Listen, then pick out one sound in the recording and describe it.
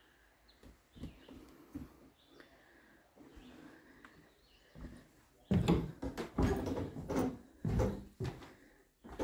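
Footsteps thud on a hollow wooden floor.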